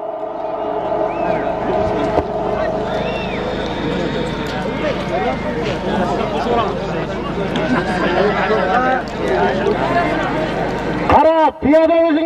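A crowd of men shouts outdoors.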